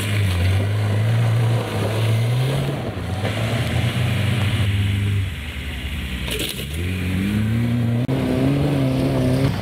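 A car engine revs hard and roars.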